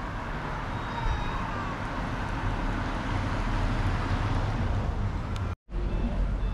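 A van drives past on the road.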